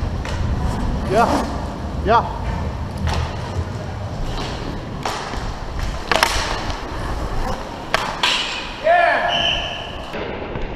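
Men shout to each other across a large echoing rink.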